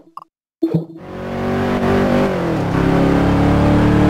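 A car engine roars and climbs steadily in pitch.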